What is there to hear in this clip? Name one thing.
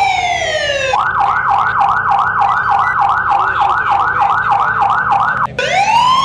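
A police siren yelps in fast rising and falling bursts.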